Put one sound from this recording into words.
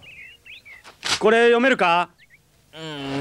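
A young boy exclaims in surprise.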